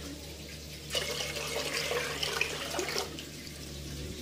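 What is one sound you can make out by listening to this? Liquid pours from a plastic jug into a metal pot.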